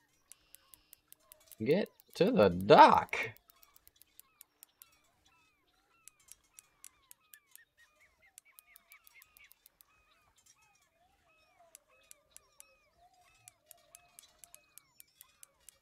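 A fishing reel clicks steadily as it is wound in.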